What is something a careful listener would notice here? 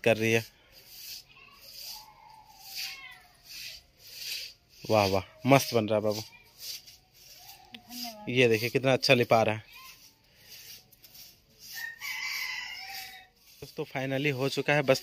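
A broom of stiff twigs sweeps and scrapes across a dirt floor in short, repeated strokes.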